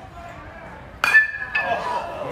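A metal bat pings sharply as it hits a baseball.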